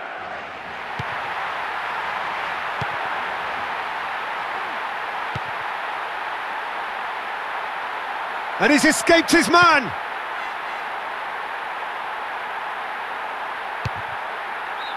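A football is kicked with dull thuds several times.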